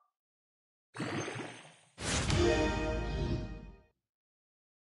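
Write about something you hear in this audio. A bright magical chime swells and rings out, then fades.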